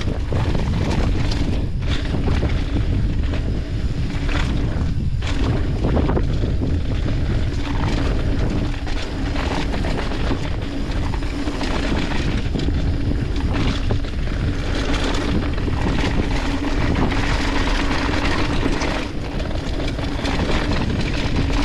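Mountain bike tyres roll fast over a dirt trail, rattling over bumps.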